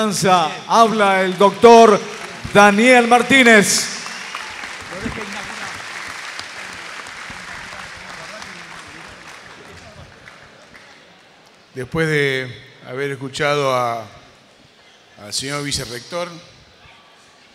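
A man announces through a loudspeaker in a large echoing hall.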